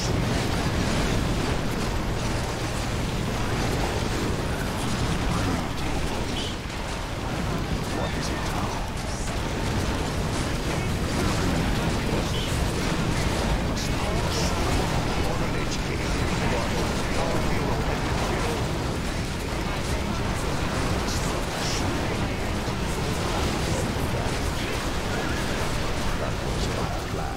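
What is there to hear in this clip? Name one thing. Weapons clash and spells burst in a busy video game battle.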